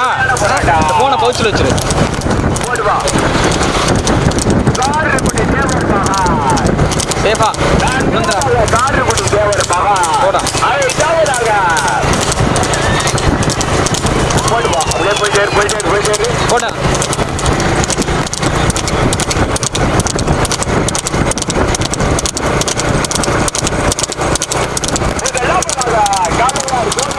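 Horse hooves clatter quickly on a paved road.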